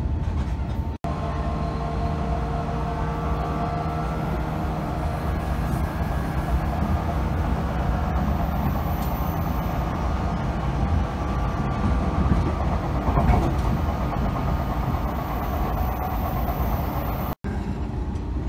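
A train's electric motor hums and whines with a shifting pitch.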